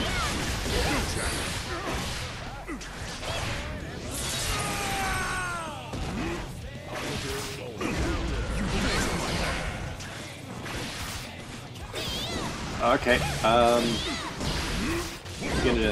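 Punches and kicks land with sharp, rapid hits.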